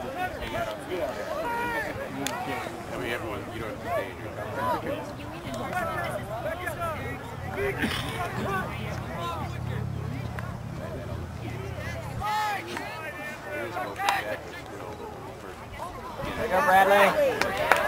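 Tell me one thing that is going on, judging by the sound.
Boys shout and call out across an open field outdoors.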